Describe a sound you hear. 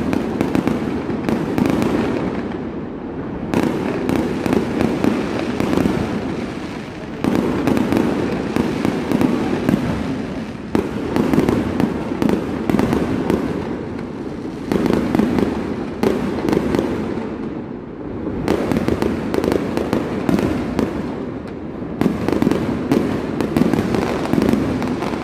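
Fireworks burst and crackle loudly nearby in rapid volleys, echoing between buildings.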